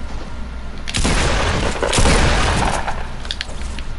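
A gun fires in a rapid, noisy burst.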